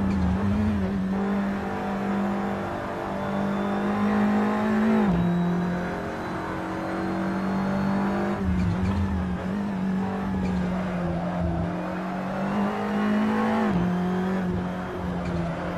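A racing car engine roars at high revs, dropping sharply with each gear change.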